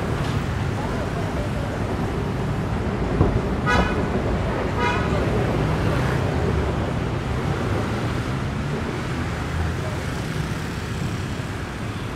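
Motorbikes ride past on the street.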